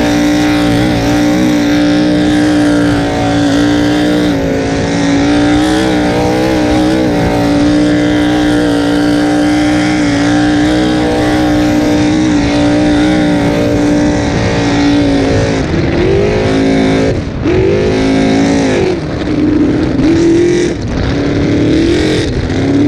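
Wind buffets loudly across a fast boat.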